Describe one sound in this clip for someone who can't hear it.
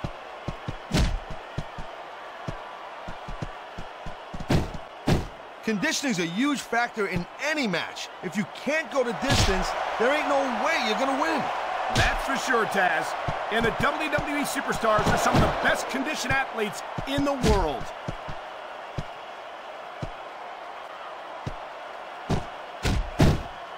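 Heavy blows thud as wrestlers strike each other.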